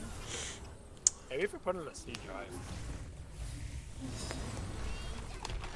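Game spell effects whoosh and zap.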